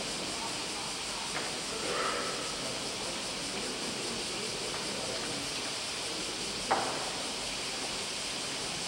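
Faint voices murmur in a large echoing hall.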